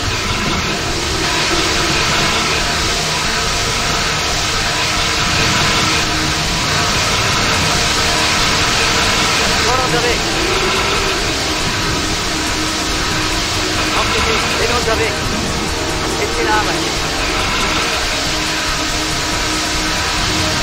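Water hoses spray with a steady hiss.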